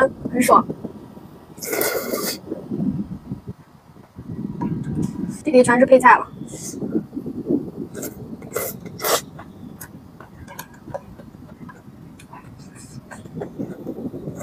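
A young woman slurps noodles loudly.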